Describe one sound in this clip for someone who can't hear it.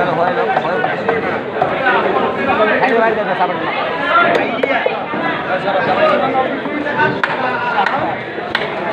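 A heavy blade chops through fish with dull thuds.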